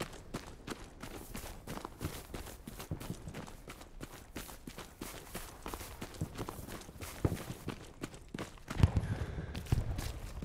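Footsteps crunch steadily over grass and gravel.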